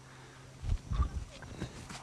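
A plastic bat strikes a ball with a hollow smack.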